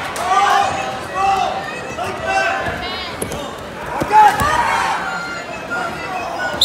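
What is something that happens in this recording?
A crowd of spectators shouts and cheers loudly in an echoing gym.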